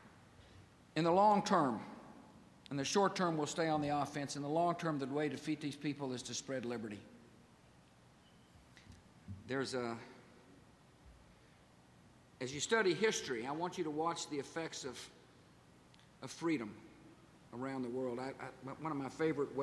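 A middle-aged man speaks calmly and deliberately through a microphone and loudspeakers.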